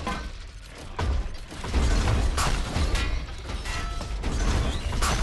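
A heavy gun fires in loud, booming bursts.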